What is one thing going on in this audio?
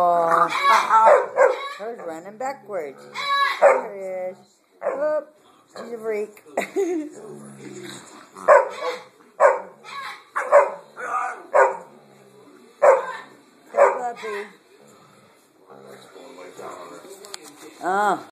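A small dog whines and yips in short bursts.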